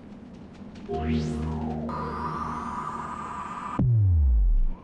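A fiery magic portal roars and hums.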